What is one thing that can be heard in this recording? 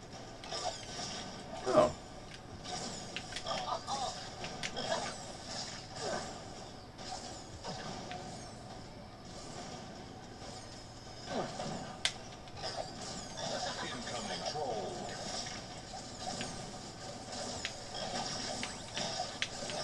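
Cartoonish game blasts go off with sparkly chimes.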